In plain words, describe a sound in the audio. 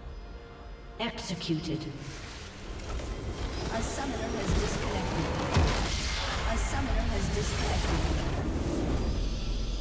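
Magic spells crackle and whoosh in a video game battle.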